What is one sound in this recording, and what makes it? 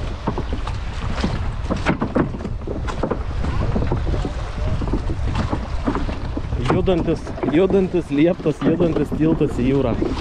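Footsteps thud on hollow wooden boards.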